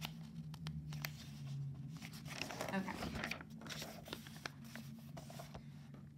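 Paper pages rustle as a notebook page is turned.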